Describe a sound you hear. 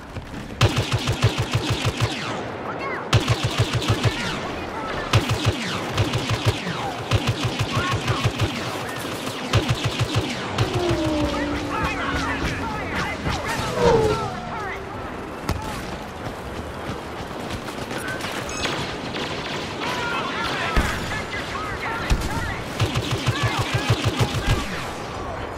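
Rapid blaster fire rattles in quick bursts.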